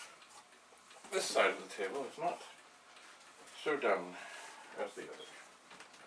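A man speaks nearby in short bursts.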